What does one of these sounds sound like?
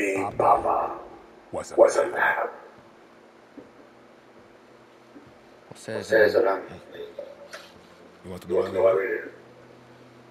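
A man speaks slowly and solemnly in a low voice, with a slight echo.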